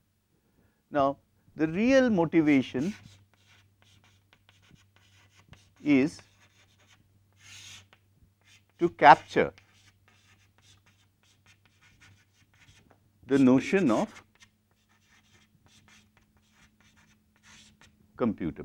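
A middle-aged man speaks calmly into a close microphone, in short bursts.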